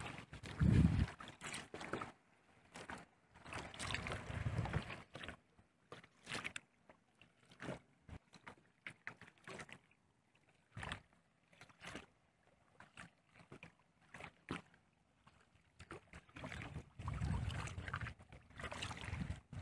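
Water splashes and swishes against a kayak's hull as it moves.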